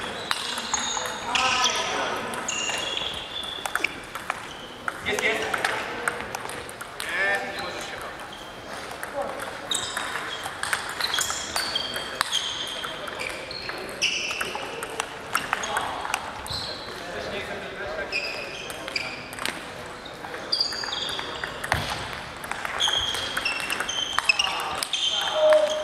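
A table tennis ball clicks back and forth off paddles and the table in a large echoing hall.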